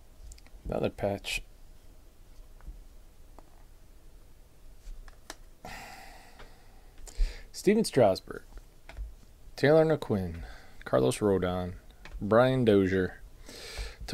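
Trading cards slide and tap against each other.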